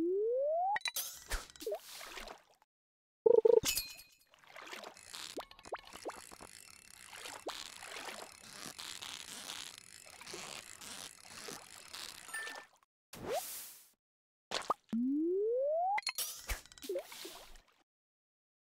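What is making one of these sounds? A bobber plops into water.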